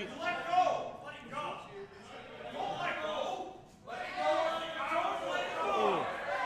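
Spectators talk and call out in an echoing hall.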